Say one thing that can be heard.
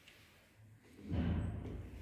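A finger presses an elevator call button with a click.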